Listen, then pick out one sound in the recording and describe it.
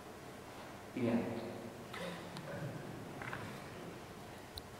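An older man speaks briefly and calmly in an echoing room.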